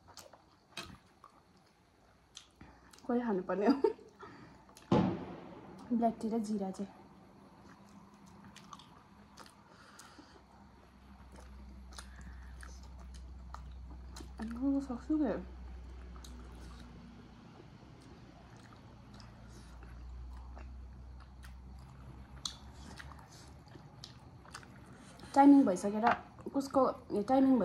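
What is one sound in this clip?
Soft food is chewed with wet, smacking mouth sounds close to a microphone.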